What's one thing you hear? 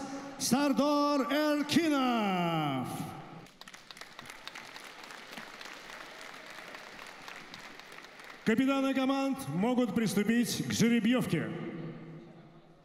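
A man announces through a loudspeaker, drawing out his words loudly in a large echoing hall.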